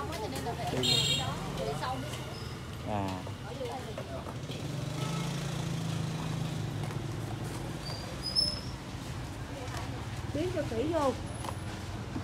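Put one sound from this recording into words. Men talk nearby in a calm, casual way.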